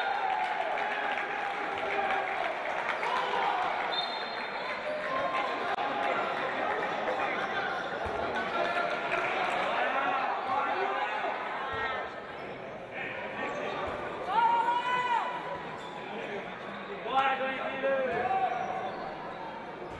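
A ball thuds as players pass and bounce it.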